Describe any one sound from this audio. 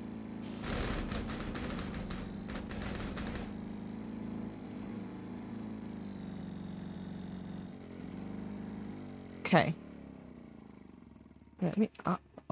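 A riding lawn mower engine rumbles steadily, then winds down and stops.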